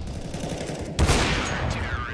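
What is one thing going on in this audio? A sniper rifle fires a single loud, sharp shot.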